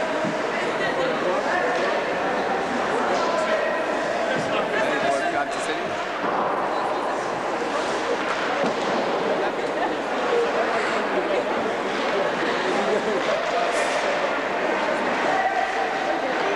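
A large crowd chatters and shouts loudly all around.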